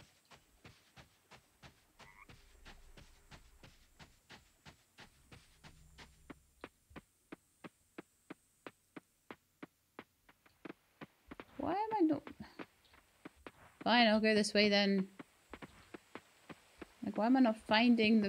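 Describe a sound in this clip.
Quick footsteps patter on soft ground.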